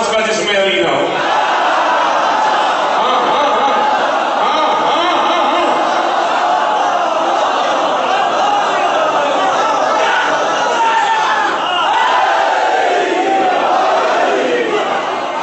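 A crowd shouts and chants together loudly.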